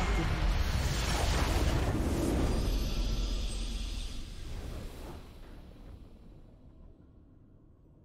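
A heavy magical blast booms and slowly fades away.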